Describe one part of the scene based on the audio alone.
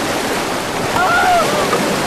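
A man shouts over the rushing water.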